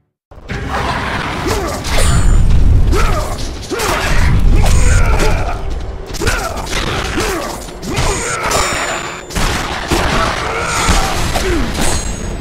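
Blows strike enemies with heavy, wet impacts.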